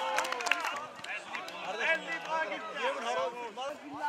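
Young men cheer and laugh together nearby.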